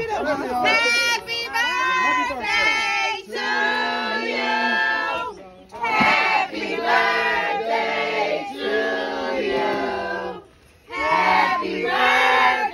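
A group of men and women sings together loudly and close by, outdoors, with short pauses between phrases.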